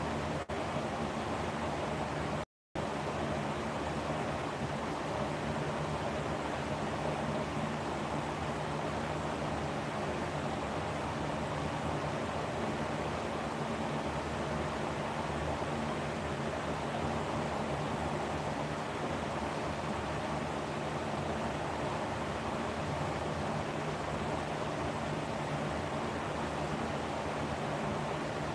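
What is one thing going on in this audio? A lamp hums with a steady electrical buzz.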